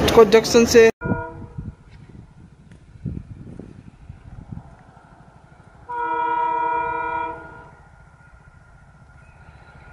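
A diesel locomotive approaches, rumbling on the tracks.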